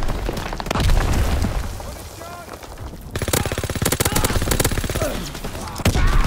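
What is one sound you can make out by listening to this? A gun fires rapid bursts at close range.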